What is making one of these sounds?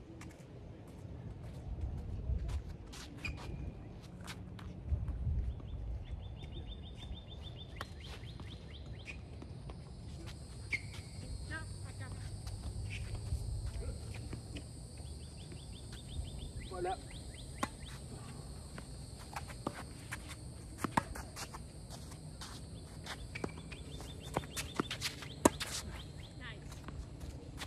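Tennis balls are struck by rackets with sharp pops.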